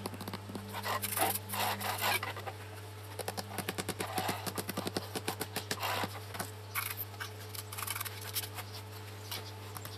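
Heavy stone blocks scrape and grind as they are set in place.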